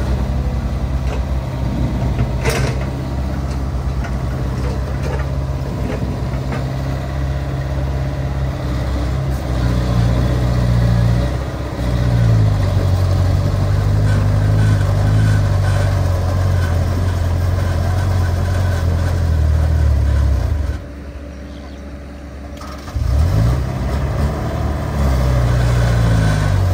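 An excavator bucket scrapes and digs through soil.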